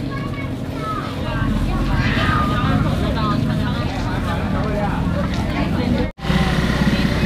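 Dry leaves rustle as they are handled.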